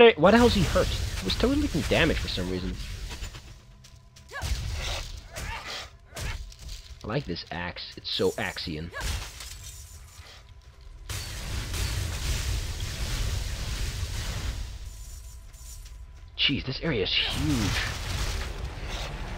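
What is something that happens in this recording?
Magic spells blast and crackle.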